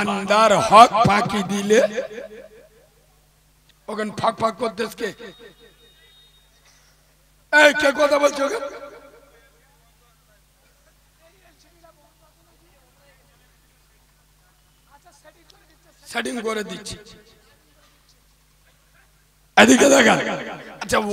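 A young man preaches forcefully into a microphone, heard through loudspeakers in short shouted bursts with pauses between.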